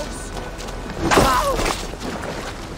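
A blade strikes a body with a heavy thud.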